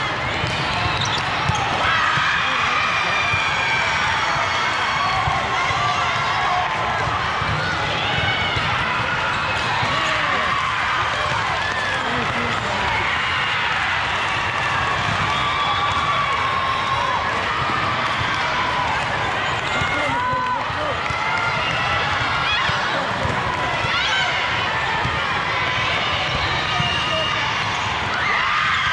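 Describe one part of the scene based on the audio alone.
A crowd of voices echoes through a large hall.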